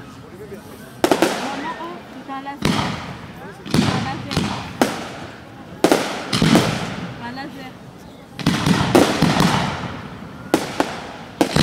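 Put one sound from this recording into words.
Fireworks crackle and sizzle.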